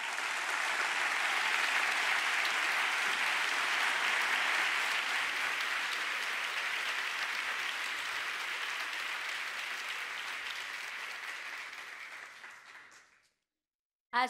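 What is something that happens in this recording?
A large audience applauds loudly in a big hall, then the applause fades away.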